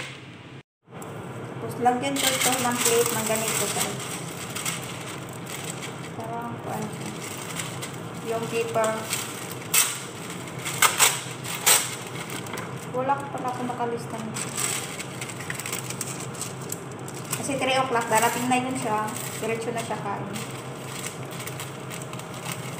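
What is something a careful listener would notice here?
Paper towels rustle and crinkle as they are handled.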